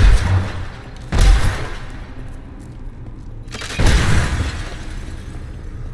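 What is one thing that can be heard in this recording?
Objects smash and crumble.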